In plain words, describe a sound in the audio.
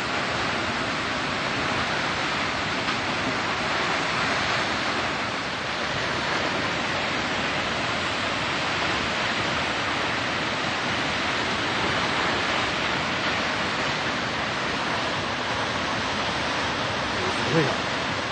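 A tall waterfall roars as it plunges onto rocks.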